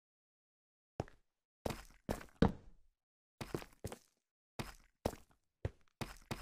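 Footsteps thud and scrape on stone.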